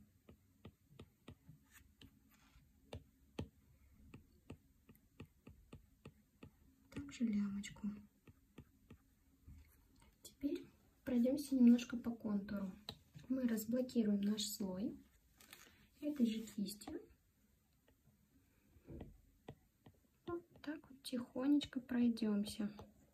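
A stylus taps and scrapes on a tablet's glass.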